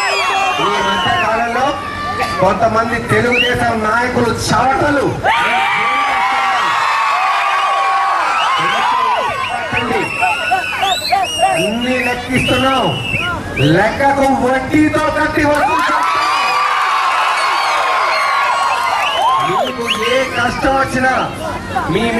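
A large crowd of women cheers and shouts loudly outdoors.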